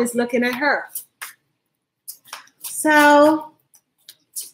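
A woman speaks close to a microphone, with animation.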